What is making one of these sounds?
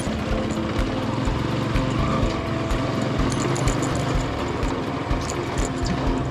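Tyres rumble and bump over a rough dirt track.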